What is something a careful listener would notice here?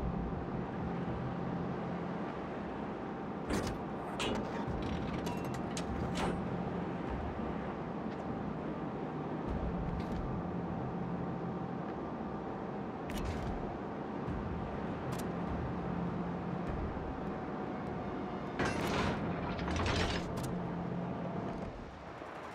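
Waves wash and splash around a ship's hull.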